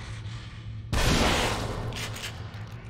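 A gunshot blasts loudly and echoes.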